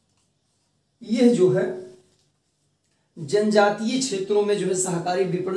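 A man speaks clearly and calmly close to a microphone.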